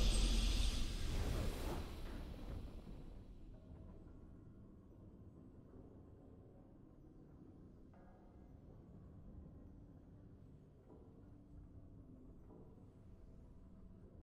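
A triumphant game fanfare booms loudly, then fades into soft music.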